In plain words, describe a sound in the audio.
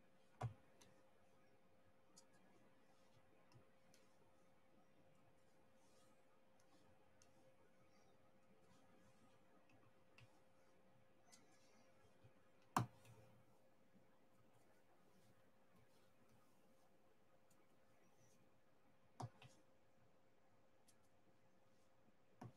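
A small tool taps and clicks as beads are pressed onto a board.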